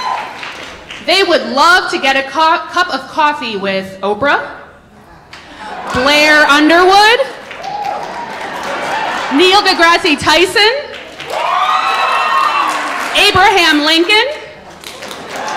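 Young performers speak loudly one after another on a stage in a large hall.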